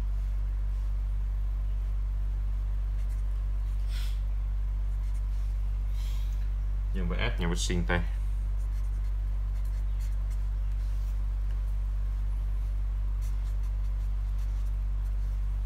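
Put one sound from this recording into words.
A marker pen squeaks and scratches softly on paper.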